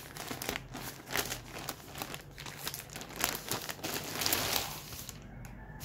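A plastic bag crinkles and rustles as hands handle it.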